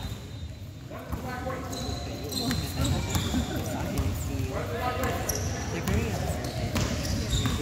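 Boys and young men shout and call out across an echoing hall.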